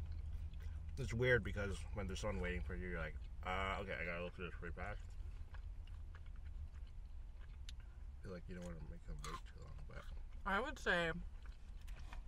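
A young man hums and murmurs close by with food in his mouth.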